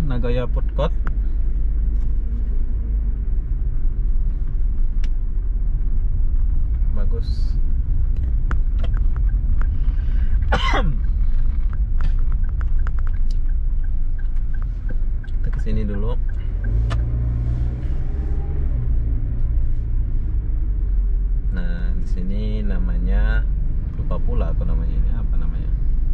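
A car engine hums and tyres rumble steadily on the road, heard from inside the car.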